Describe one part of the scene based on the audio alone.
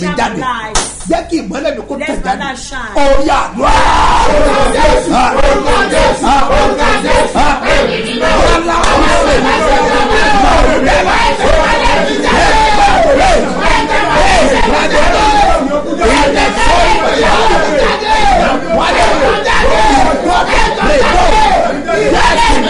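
A middle-aged man preaches loudly and with fervour into a microphone.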